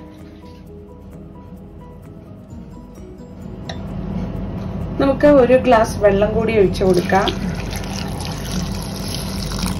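Liquid trickles steadily into a metal pot.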